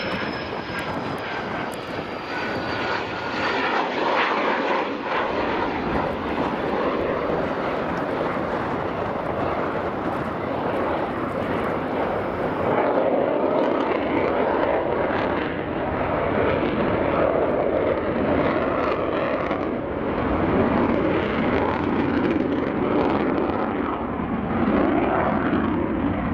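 A jet engine roars loudly overhead, with a rumbling, shifting tone.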